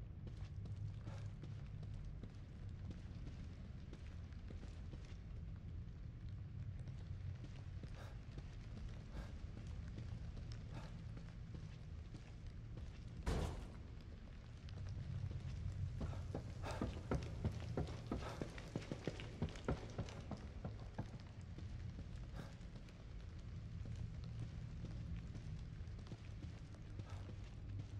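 Footsteps thud softly across a floor.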